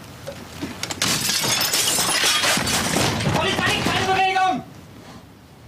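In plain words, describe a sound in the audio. A wooden door is kicked open with a loud crash.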